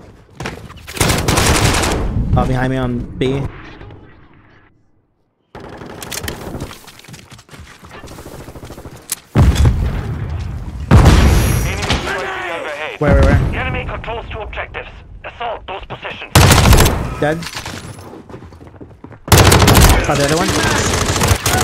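Gunfire from a game rattles in rapid bursts.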